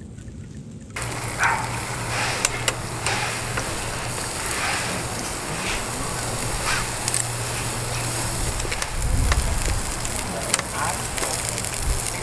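Metal tongs clink against a grill.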